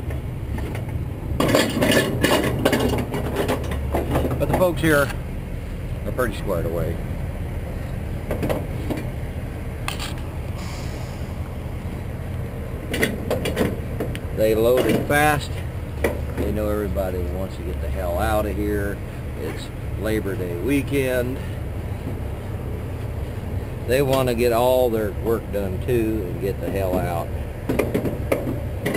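A fabric strap scrapes and rustles against a metal wheel rim.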